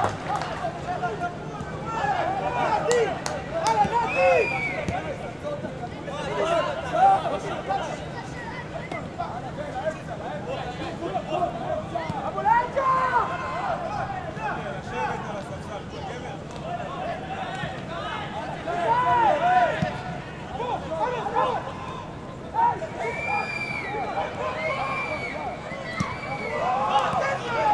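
Football players shout to each other outdoors.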